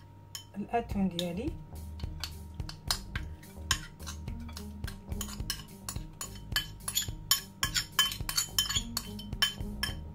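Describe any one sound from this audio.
A spoon clinks and scrapes against a ceramic bowl.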